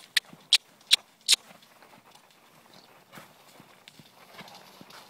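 A horse trots with soft, dull hoofbeats on sandy ground.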